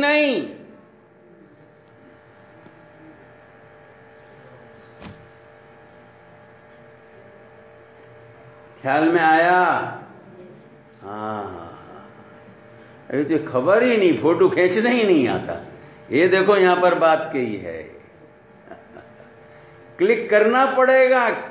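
An elderly man speaks forcefully through a microphone and loudspeakers, with long pauses.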